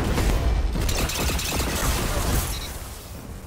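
A heavy weapon fires with a loud, rumbling explosion.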